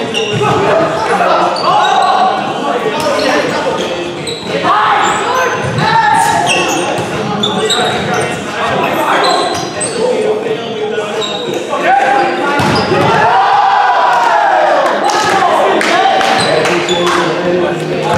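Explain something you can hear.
A volleyball is struck with sharp slaps in a large echoing gym.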